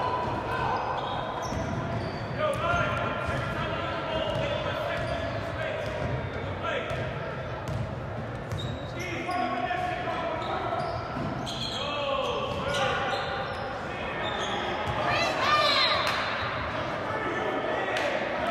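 Voices of players and spectators echo through a large hall.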